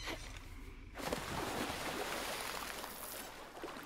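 Water sloshes softly around a swimmer.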